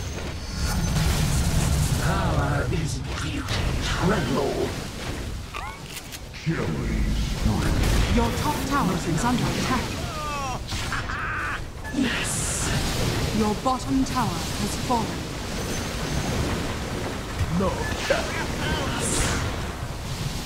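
Fantasy video game battle sounds clash, with spell effects bursting.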